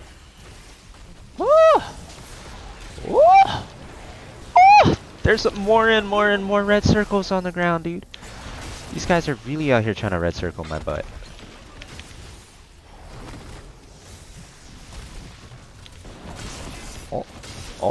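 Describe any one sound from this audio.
Video game battle effects zap and crackle.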